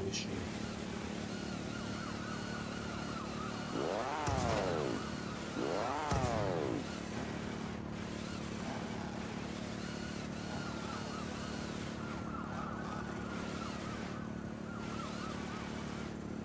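A kart engine hums steadily.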